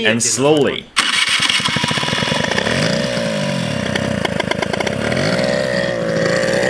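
A scooter engine starts and runs, revving.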